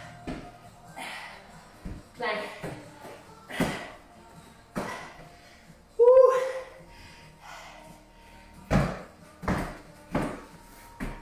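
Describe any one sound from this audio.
A woman breathes hard and grunts with effort.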